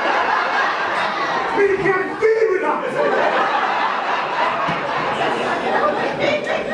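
A man speaks loudly and with animation in a room with an echo.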